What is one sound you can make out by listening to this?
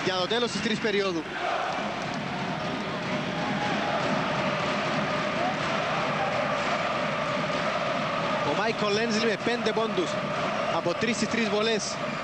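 A large crowd cheers and chants in an echoing hall.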